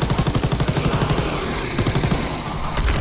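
Gunfire bursts loudly and rapidly.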